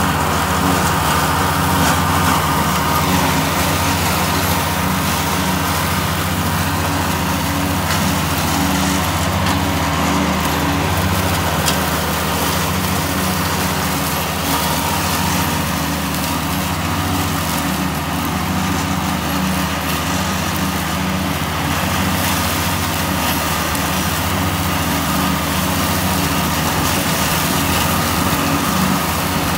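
A mower's spinning blades whir as they cut through tall grass.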